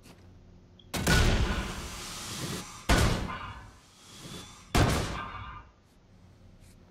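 Loud explosions boom in quick succession.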